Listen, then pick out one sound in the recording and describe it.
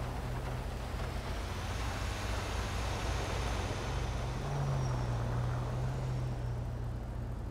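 A truck drives past.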